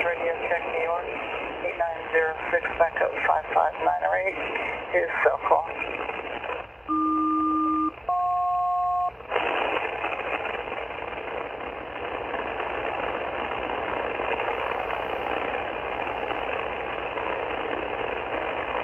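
A radio receiver hisses with static.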